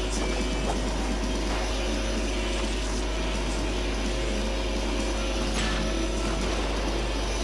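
A kart engine hums steadily as it races along a track.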